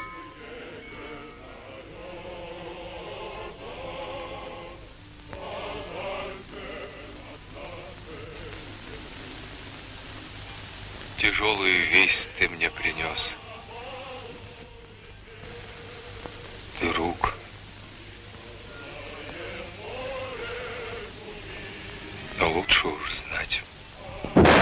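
A man speaks in a low, gruff voice nearby.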